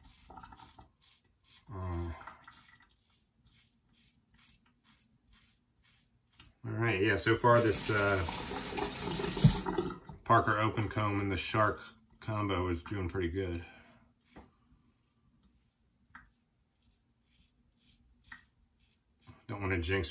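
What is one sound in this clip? A razor scrapes across stubble.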